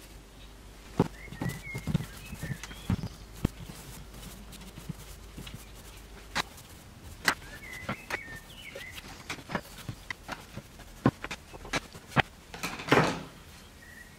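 Hands tap and thump on a wooden cutting board.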